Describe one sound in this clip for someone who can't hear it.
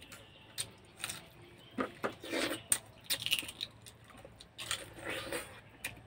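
A man slurps and chews food close by.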